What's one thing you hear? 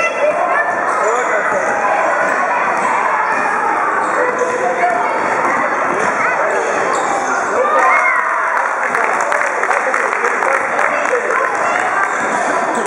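A crowd of children shout and chatter in a large echoing hall.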